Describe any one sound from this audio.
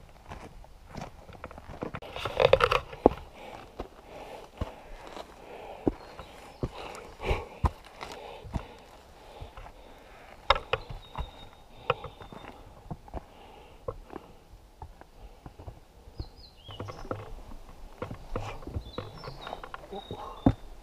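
Boots crunch and scuff on a rocky forest trail.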